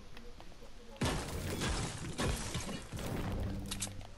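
A pickaxe strikes a stone structure repeatedly.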